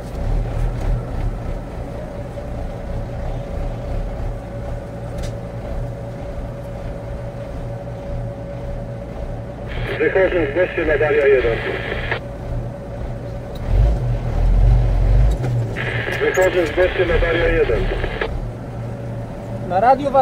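A fire engine idles with a steady low rumble.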